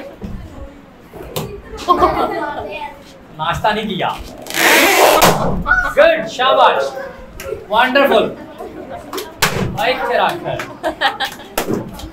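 Young boys talk and laugh excitedly close by.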